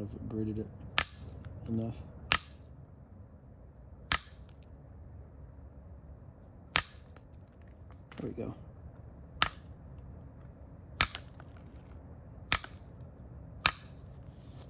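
An antler hammer strikes stone with sharp clicking knocks.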